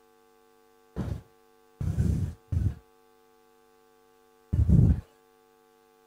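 Footsteps thud across a stage.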